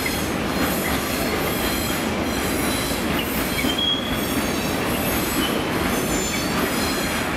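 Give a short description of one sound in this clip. A freight train rumbles past with wheels clattering on the rails.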